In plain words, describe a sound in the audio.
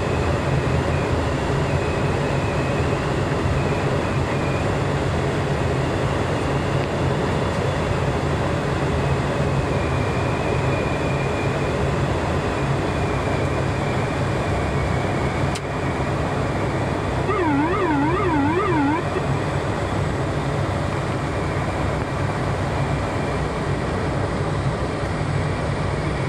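Aircraft engines drone loudly and steadily.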